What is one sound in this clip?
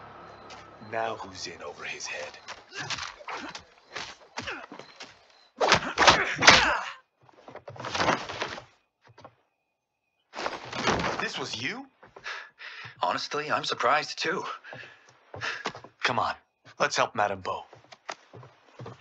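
A man speaks calmly in a low voice.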